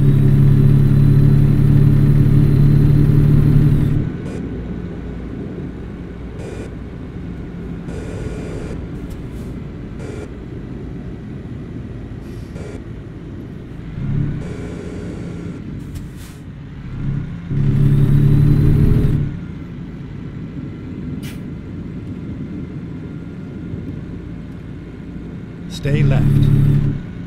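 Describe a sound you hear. Tyres hum on a road.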